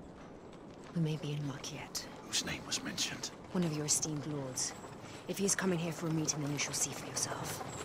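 A young woman speaks calmly in a low voice.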